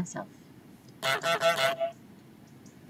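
A goose honks loudly.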